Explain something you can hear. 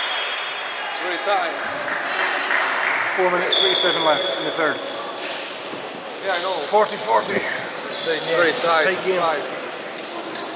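Young players call out to each other in a large echoing hall.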